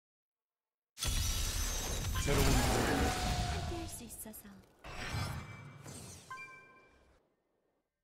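Spell effects crackle and whoosh loudly.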